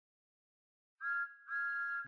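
A steam engine whistle blows two short, shrill blasts.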